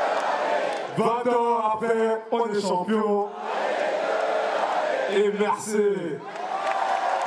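Young men sing and shout together with excitement.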